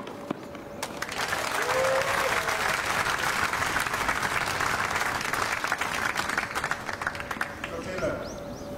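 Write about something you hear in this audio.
A crowd applauds.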